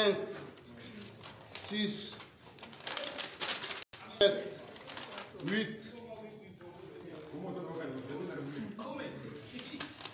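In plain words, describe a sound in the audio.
Paper sheets rustle and slide as hands sort through stacks.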